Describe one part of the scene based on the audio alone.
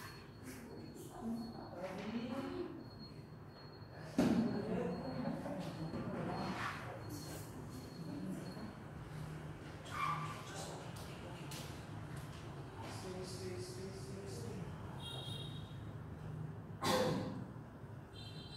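A woman calmly gives instructions.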